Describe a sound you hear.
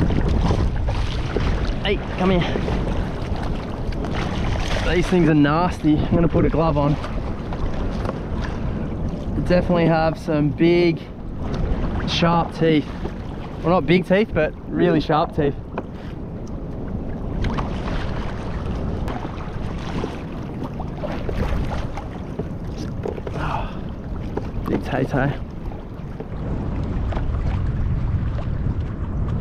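Small waves lap against a kayak's hull.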